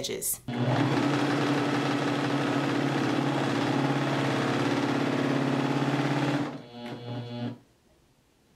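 A sewing machine stitches rapidly with a steady whirring hum.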